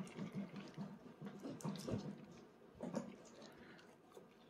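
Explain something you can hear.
A toddler slurps and chews noodles.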